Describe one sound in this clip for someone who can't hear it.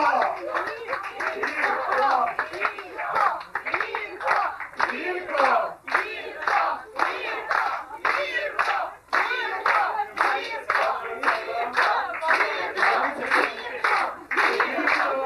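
A group of adults claps along in a steady rhythm.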